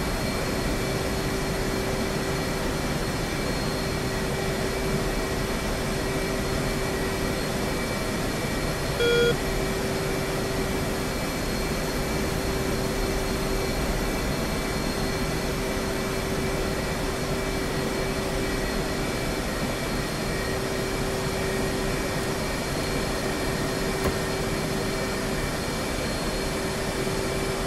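A jet engine hums and whines steadily.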